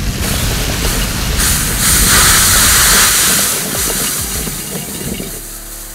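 A water jet hisses onto flames.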